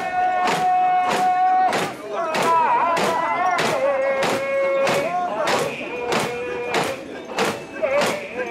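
Metal ornaments on a carried shrine jangle with each bounce.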